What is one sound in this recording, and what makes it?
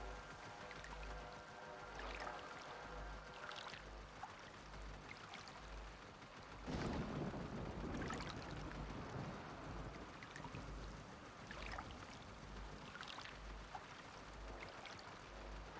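Shallow water laps and splashes gently.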